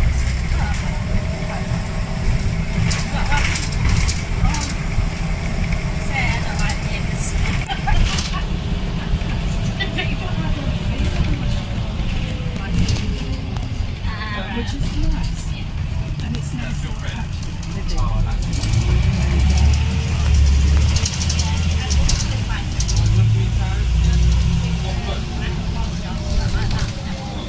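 The bus body rattles and clatters over the road.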